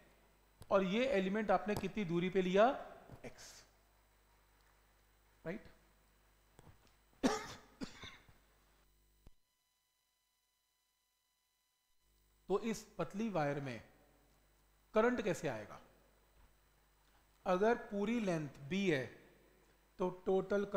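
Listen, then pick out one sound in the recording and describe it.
A man speaks calmly into a close microphone, explaining in pauses.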